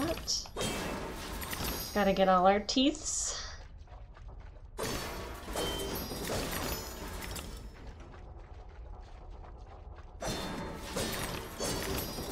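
Clay pots smash and shatter in bursts.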